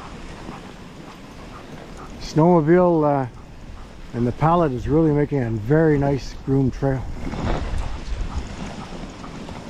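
Sled runners hiss over packed snow.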